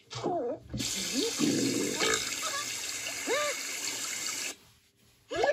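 Shower water sprays and hisses through a small speaker.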